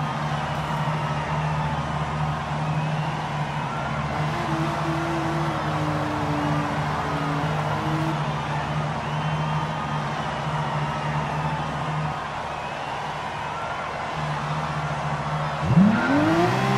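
Racing car engines idle with a low, steady rumble.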